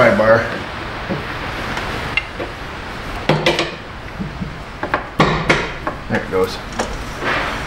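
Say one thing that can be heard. Metal tools clink and clank against an engine.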